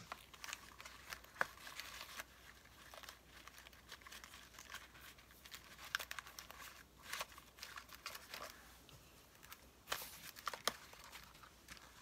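Paper cards rustle and tap as hands shuffle them.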